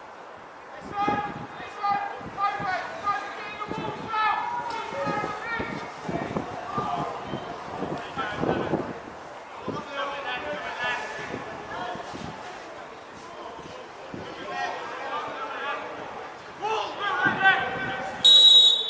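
Young men shout and call to each other across an open pitch.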